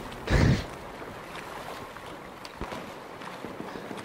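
Water splashes and sloshes as a swimmer moves through it.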